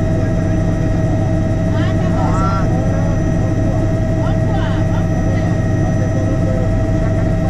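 A helicopter engine and rotor drone steadily and loudly.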